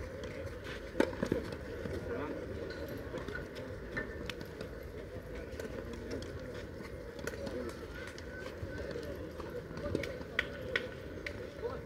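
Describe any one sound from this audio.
Tennis balls are struck with rackets outdoors.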